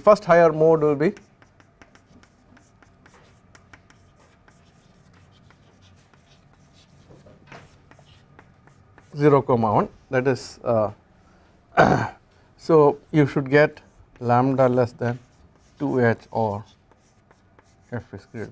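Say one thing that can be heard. A man speaks calmly through a microphone, lecturing.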